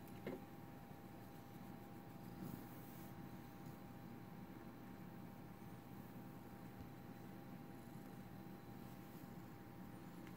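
A hand softly rubs through fur.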